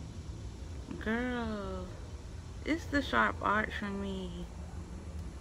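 A young woman speaks briefly and casually, close by.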